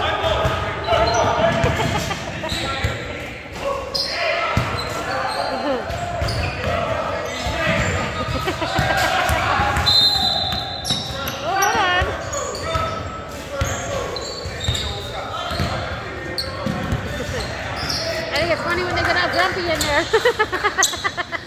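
A basketball bounces on a wooden floor in a large echoing gym.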